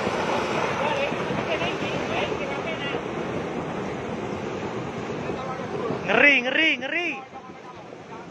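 Floodwater rushes and churns loudly.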